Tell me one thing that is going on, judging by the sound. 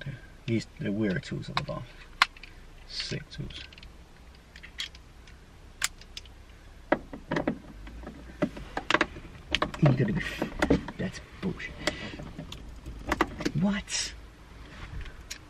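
Plastic trim clicks and knocks as a screwdriver pries at it.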